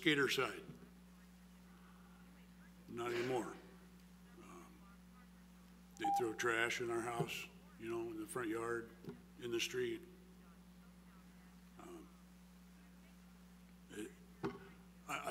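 An elderly man speaks slowly and haltingly into a microphone, with pauses.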